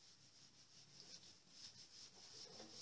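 Chalk scrapes and taps on a blackboard.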